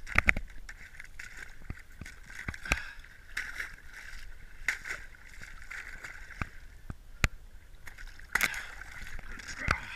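Feet break and splash through thin ice in water.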